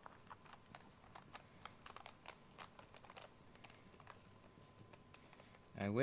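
Plastic film crinkles and taps under fingers, close by.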